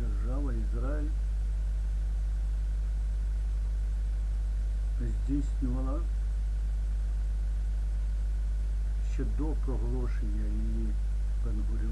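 An elderly man speaks calmly in short phrases close to a microphone.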